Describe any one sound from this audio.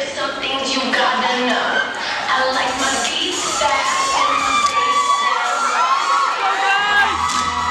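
A group of young men sing together.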